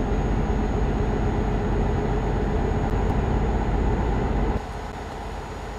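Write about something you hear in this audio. A truck engine drones steadily with a deep rumble, then quietens.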